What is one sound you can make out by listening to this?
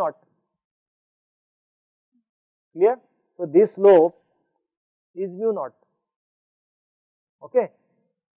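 A man speaks calmly and slowly into a close microphone, with long pauses.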